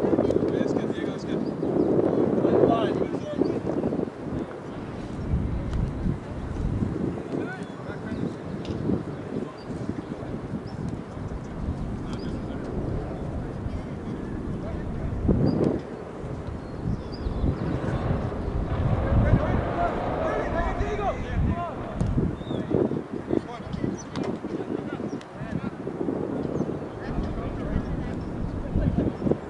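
Young women call out to each other in the distance on an open field.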